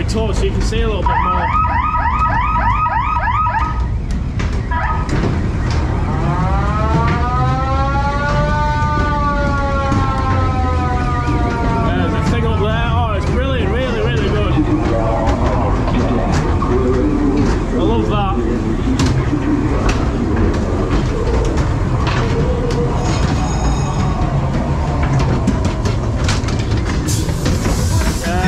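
A ride car rumbles and rattles steadily along a track.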